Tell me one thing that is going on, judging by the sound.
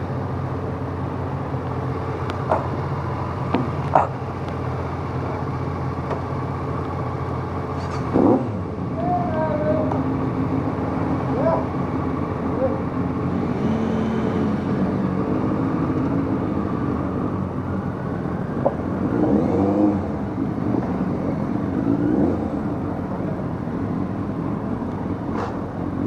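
A motorcycle engine idles and then rumbles steadily as the bike rides along.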